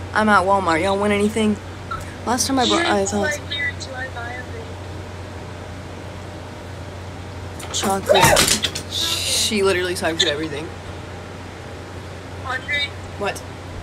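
A young woman talks casually and close by, with pauses.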